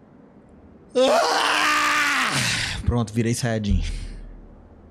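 A young man shouts loudly and excitedly into a microphone.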